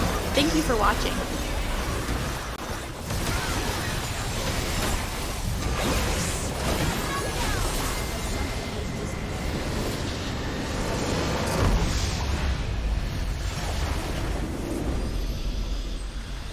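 Game spell effects crackle and boom during a battle.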